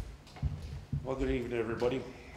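A man talks loudly across the room.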